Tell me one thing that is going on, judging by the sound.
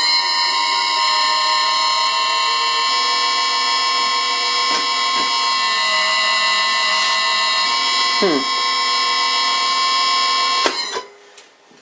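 A machine spins with a steady high whine, then cuts off.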